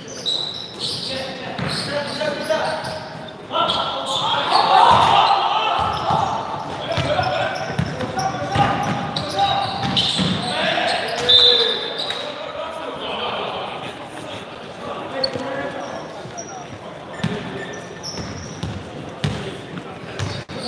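A crowd of young spectators chatters and shouts in a large echoing hall.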